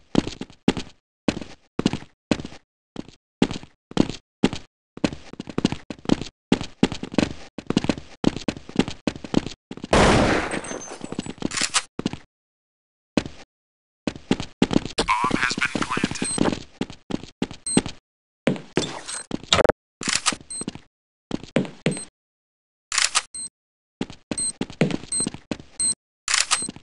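Footsteps run quickly and evenly over stone and wooden floors.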